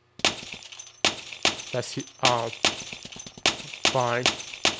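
Crystals shatter with sharp, chiming clinks.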